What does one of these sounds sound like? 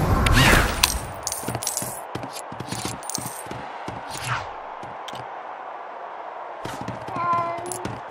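Light footsteps patter on wooden boards.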